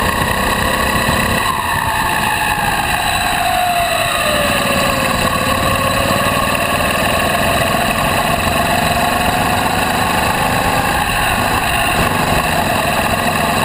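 A go-kart engine whines loudly up close, its pitch rising and falling with the throttle.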